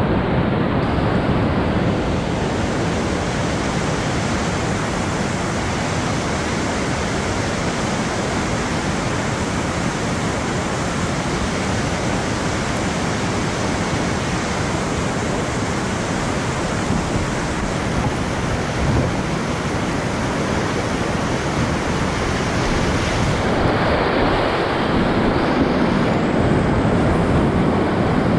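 Whitewater rapids roar loudly and steadily close by.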